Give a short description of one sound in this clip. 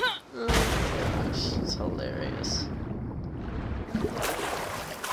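Water bubbles and gurgles underwater.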